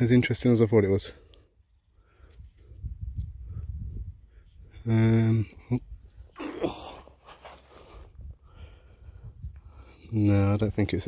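Gloved fingers rub and crumble dry soil off a small object.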